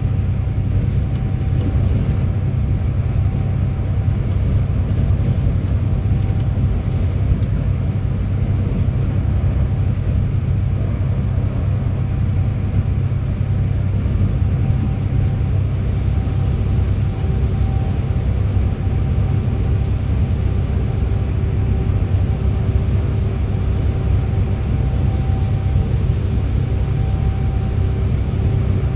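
Tyres hum steadily on the road.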